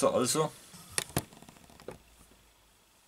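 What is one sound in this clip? A box rustles and knocks as hands open it.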